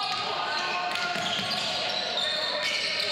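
A basketball bounces on the floor in a large echoing hall.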